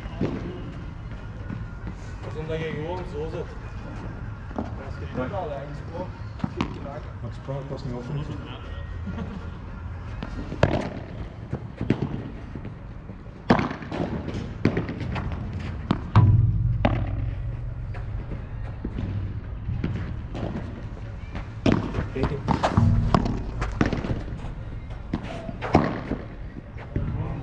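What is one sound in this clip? Padel rackets hit a ball with sharp pops.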